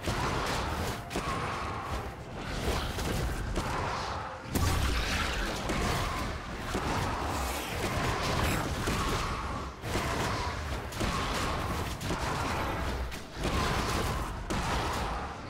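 Spell blasts and weapon hits crackle and thud in a game battle.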